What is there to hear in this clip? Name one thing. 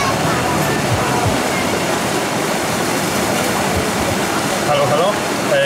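White water rushes and roars loudly.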